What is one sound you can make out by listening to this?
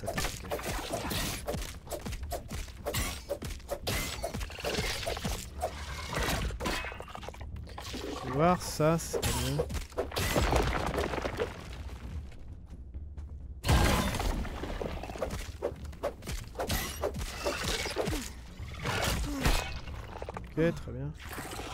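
Blade strikes thud against a large creature again and again.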